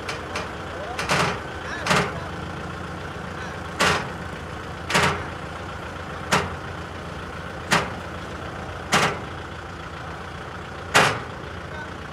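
Metal ramps clank loudly as a tractor climbs onto a truck.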